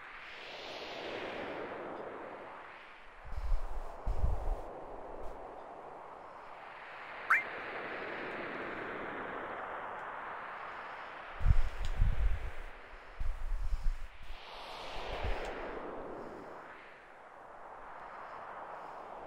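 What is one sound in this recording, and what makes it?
Wind howls across open snow in rising and falling gusts.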